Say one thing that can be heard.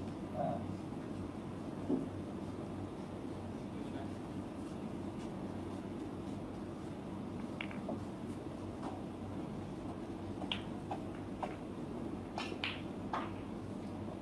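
Snooker balls click softly as they are placed on the table.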